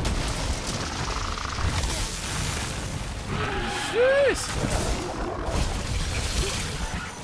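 Water splashes and crashes loudly.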